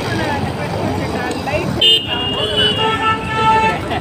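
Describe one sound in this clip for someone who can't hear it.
A bus drives by close up.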